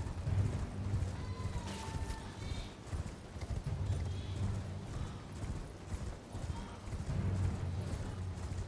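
A horse's hooves gallop steadily over grass.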